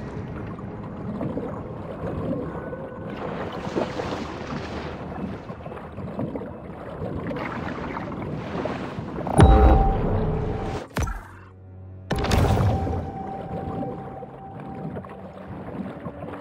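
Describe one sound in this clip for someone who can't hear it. Water swirls and rushes as a shark swims underwater.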